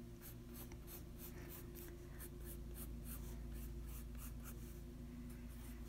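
A pencil scratches quickly across paper in short strokes.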